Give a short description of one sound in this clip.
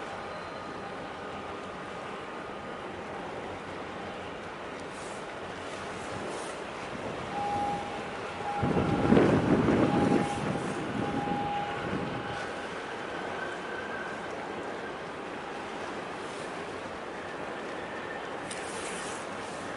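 Ship engines rumble low across open water.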